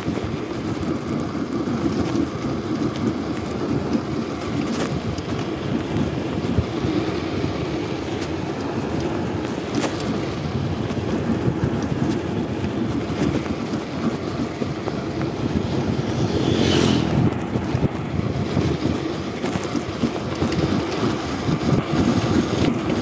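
Bicycle tyres roll over a concrete road.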